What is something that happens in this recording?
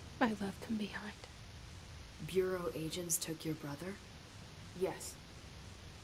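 A young woman speaks calmly in short lines.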